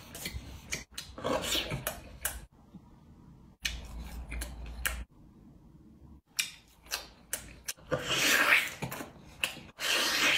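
A young man bites into and chews meat.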